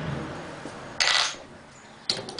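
A metal part clanks against a steel rod.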